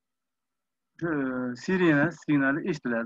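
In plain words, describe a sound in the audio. A middle-aged man speaks through an online call.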